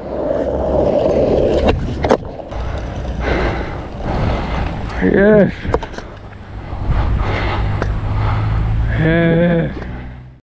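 Skateboard wheels rumble steadily over rough asphalt.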